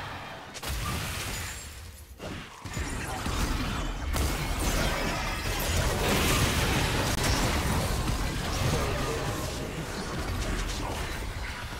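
Game spell effects whoosh and crackle in a busy fight.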